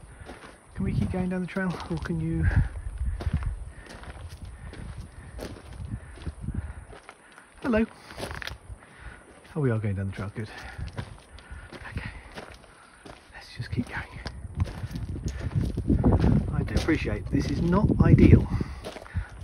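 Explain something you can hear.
A fawn's hooves tap and scrape on loose rocks.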